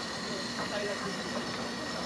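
A thick liquid pours onto a metal pan.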